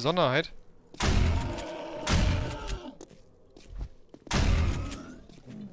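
A shotgun fires loud blasts at close range.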